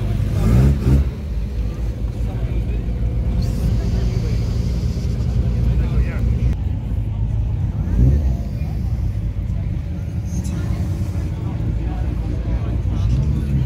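A car engine idles with a deep, low rumble.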